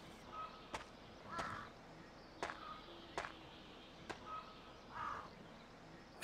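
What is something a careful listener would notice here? Footsteps thud on stone steps.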